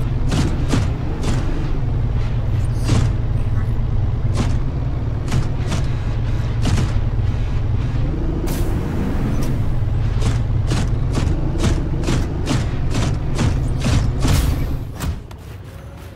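An underwater vehicle's engine hums and rumbles steadily.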